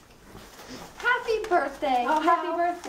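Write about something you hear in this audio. A young girl speaks clearly nearby.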